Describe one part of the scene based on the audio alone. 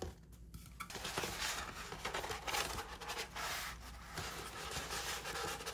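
A paper poster crackles as it is unrolled.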